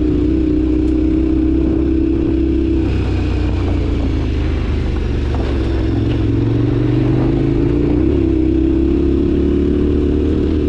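Tyres crunch and rattle over loose gravel.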